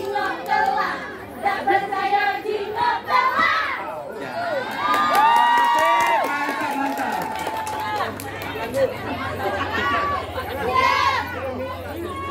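A group of women sing together.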